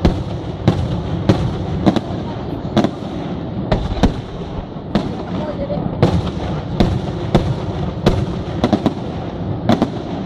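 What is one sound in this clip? Fireworks burst with sharp booming bangs.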